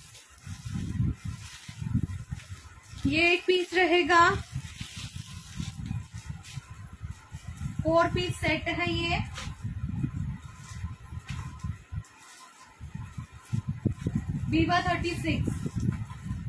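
A plastic wrapper rustles and crinkles.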